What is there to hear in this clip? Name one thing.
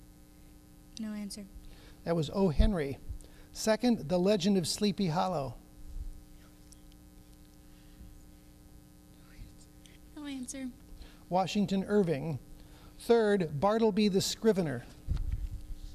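An older man reads out aloud into a microphone.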